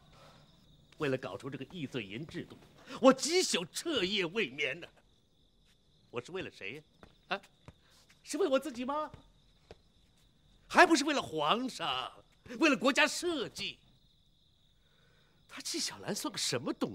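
An older man speaks loudly with animation, close by.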